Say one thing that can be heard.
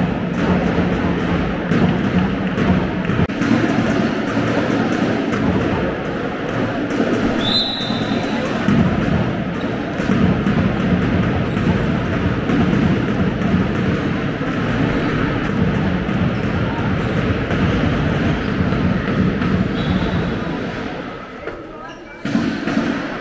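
Sport shoes squeak on a hard floor.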